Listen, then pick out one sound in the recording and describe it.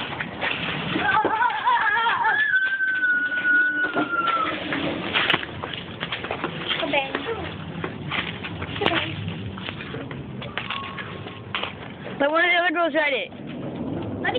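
A young girl talks and squeals nearby.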